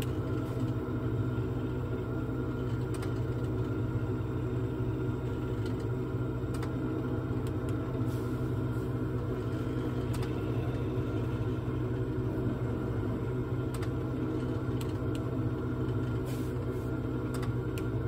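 A small propeller aircraft engine drones steadily.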